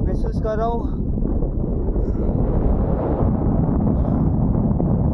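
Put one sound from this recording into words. Wind rumbles steadily across the microphone outdoors.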